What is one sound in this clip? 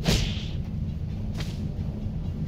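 A heavy blow lands with a thud.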